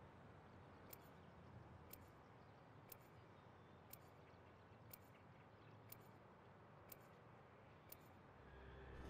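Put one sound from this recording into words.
A countdown timer ticks once a second.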